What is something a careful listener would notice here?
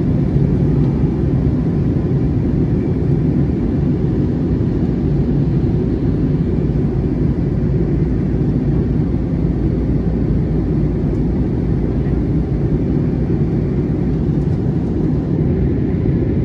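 A jet airliner's engines roar with a steady, deep rumble inside the cabin.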